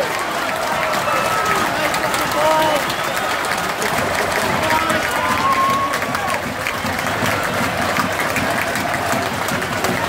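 Fans nearby clap their hands.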